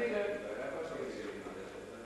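A violin plays.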